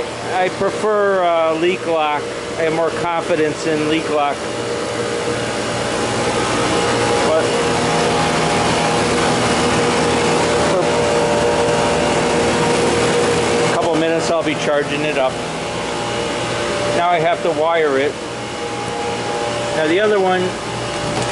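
A refrigeration unit hums steadily with whirring fans.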